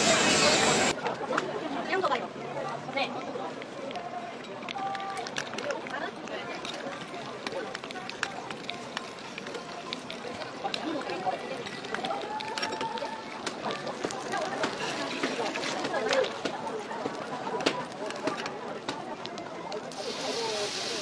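Food sizzles on a hot griddle.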